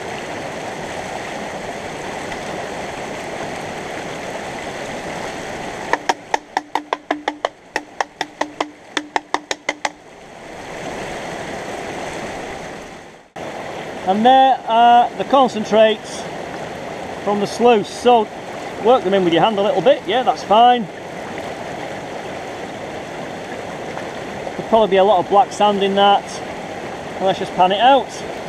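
A shallow stream babbles nearby.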